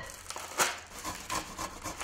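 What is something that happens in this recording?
Cheese scrapes against a grater.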